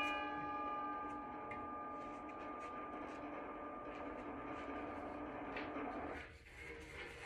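A keyboard chord rings out steadily, then stops.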